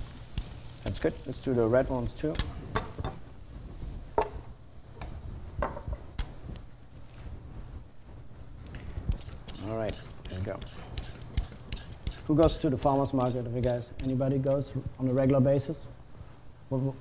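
A man talks calmly into a clip-on microphone.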